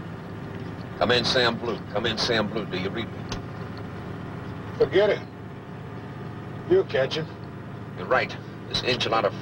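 A man talks into a handheld radio microphone.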